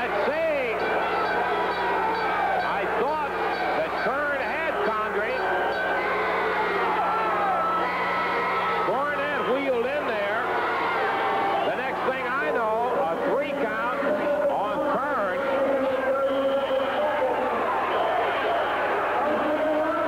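A large crowd cheers and shouts in a big echoing arena.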